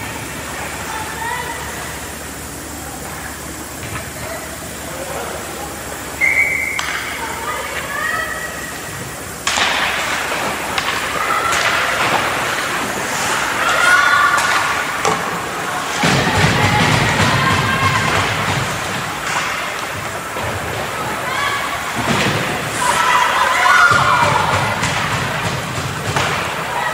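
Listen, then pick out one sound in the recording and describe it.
Young players shout and call out to each other across the rink.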